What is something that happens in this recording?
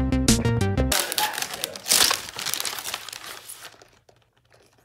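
Wrapping paper rustles and tears.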